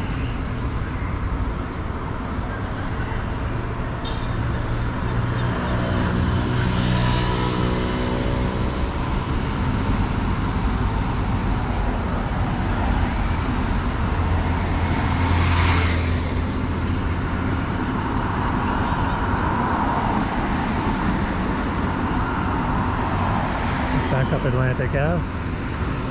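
Steady wind rumbles outdoors.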